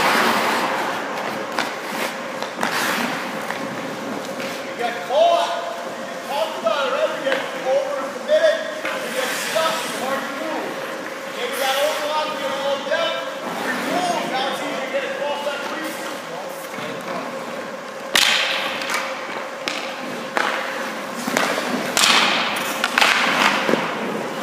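A hockey stick slaps a puck.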